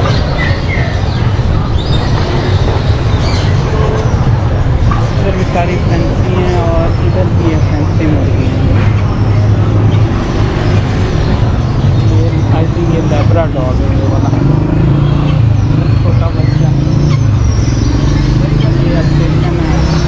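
Men talk casually in the background.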